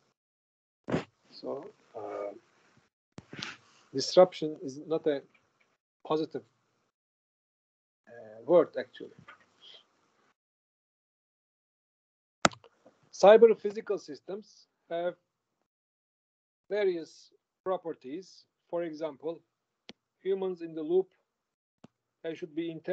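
An elderly man lectures calmly through an online call.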